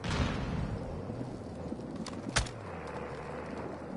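A rifle is raised with a short metallic clatter.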